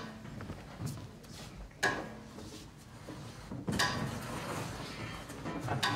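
A cello plays a low bowed note.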